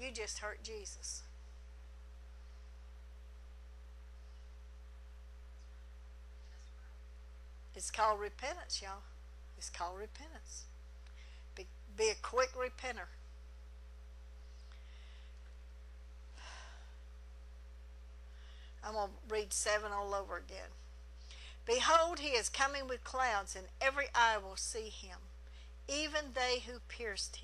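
A middle-aged woman speaks calmly into a microphone, with pauses.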